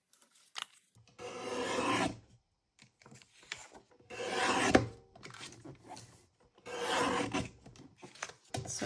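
A paper trimmer blade slides along, slicing through paper.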